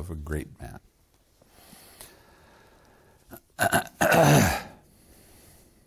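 An elderly man speaks calmly and slowly, close to a microphone.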